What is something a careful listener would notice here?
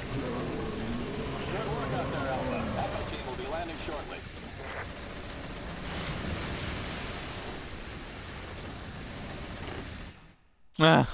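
A heavy mounted gun fires in rapid bursts.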